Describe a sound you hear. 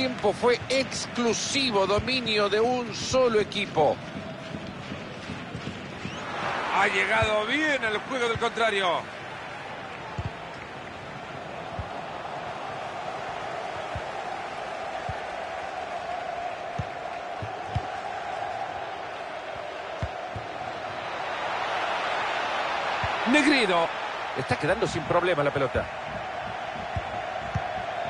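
A large stadium crowd murmurs and cheers steadily, swelling louder for a while.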